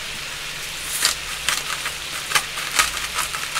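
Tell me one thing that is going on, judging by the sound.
A pepper grinder crunches in quick bursts.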